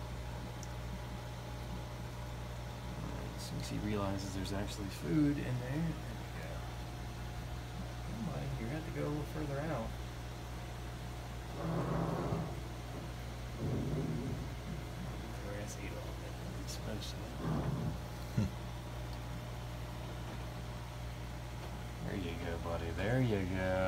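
Air bubbles trickle softly through water.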